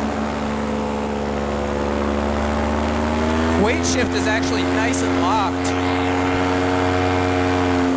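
A small engine drones steadily and close by.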